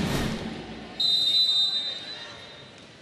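A referee's whistle blows once.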